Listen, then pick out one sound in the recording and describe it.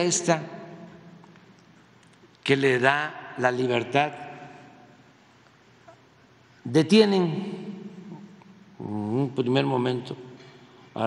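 An elderly man speaks with animation into a microphone, in short bursts with pauses, in a room with a slight echo.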